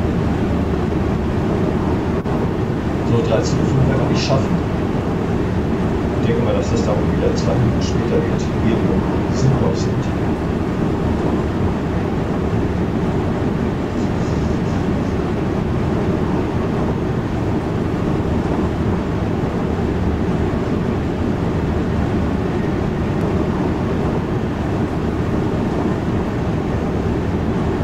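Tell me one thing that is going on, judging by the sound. A train rumbles steadily along the rails at speed.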